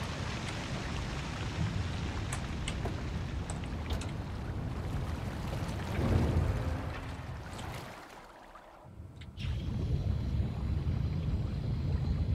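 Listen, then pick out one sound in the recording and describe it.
A small underwater vehicle hums with a deep, steady rumble.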